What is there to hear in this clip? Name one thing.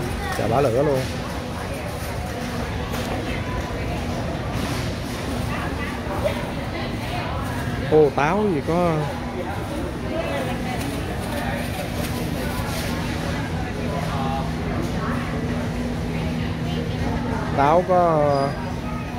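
Shoppers chatter in a low murmur in a large echoing hall.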